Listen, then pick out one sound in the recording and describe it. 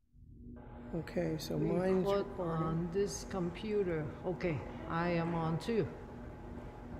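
An elderly woman speaks nearby through a lapel microphone.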